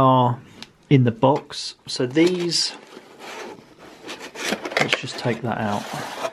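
Fingers rustle and click against a plastic box insert.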